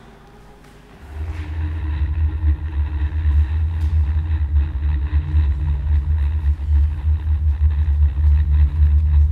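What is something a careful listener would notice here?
A deep electronic drone throbs loudly in an echoing hall.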